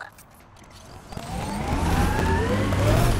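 A vehicle engine starts and revs up.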